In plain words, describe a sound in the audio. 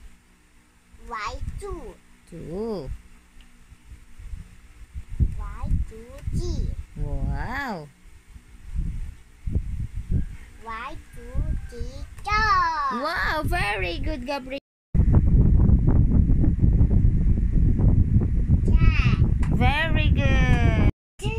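A young boy talks and sounds out words close by.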